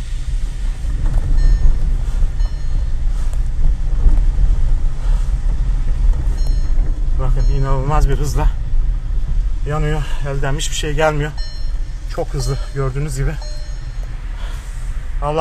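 A car rumbles steadily along a road, heard from inside.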